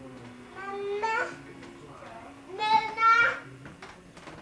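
A toddler squeals loudly nearby.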